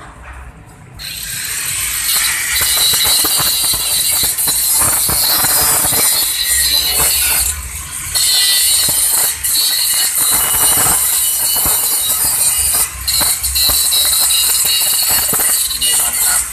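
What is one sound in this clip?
An angle grinder cuts through metal with a loud, shrill whine.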